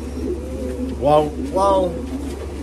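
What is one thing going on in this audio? A young man speaks briefly, close to the microphone.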